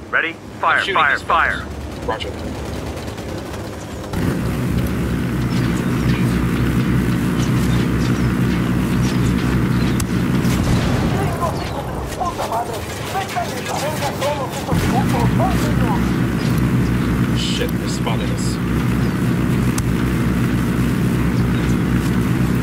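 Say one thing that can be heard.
A helicopter's rotor thumps steadily and loudly overhead.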